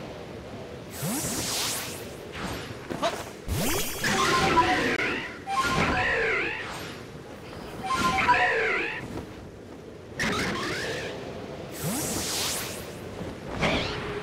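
Large wings beat with whooshing gusts of air.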